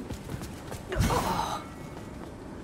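A heavy iron gate swings open with a loud grinding clang.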